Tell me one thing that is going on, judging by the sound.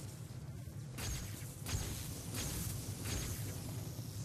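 A gadget fires with sharp bursts.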